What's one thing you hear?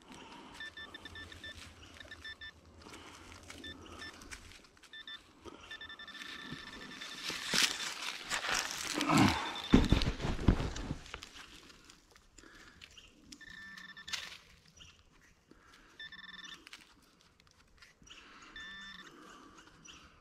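An electronic detector beeps in short, high bursts.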